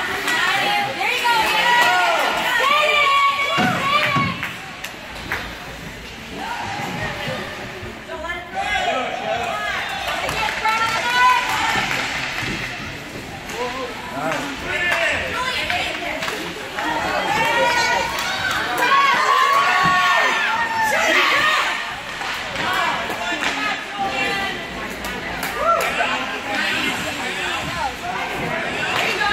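Spectators cheer and shout in an echoing rink.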